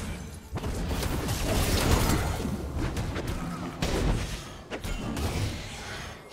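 Weapon strikes and spell effects crash in a video game battle.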